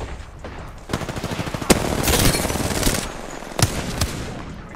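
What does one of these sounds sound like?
Automatic gunfire rattles in quick bursts.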